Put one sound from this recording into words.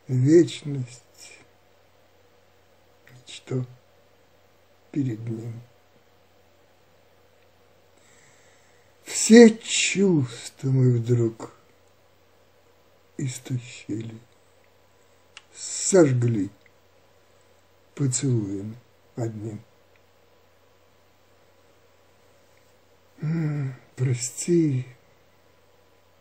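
An elderly man speaks calmly close to a microphone, in short phrases with pauses.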